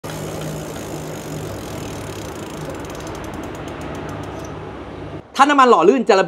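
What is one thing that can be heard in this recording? A bicycle wheel spins with a soft whirring and ticking.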